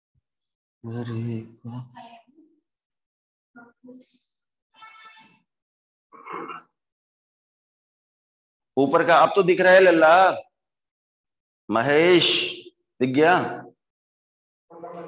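A man speaks with animation nearby, in short bursts with pauses.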